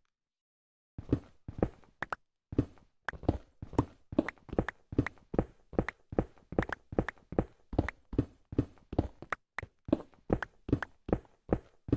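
A pickaxe chips rapidly at stone and dirt blocks with crunchy, repeated knocks.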